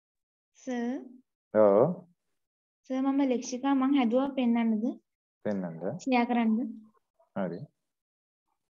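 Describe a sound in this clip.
A man speaks calmly and close by, heard over an online call.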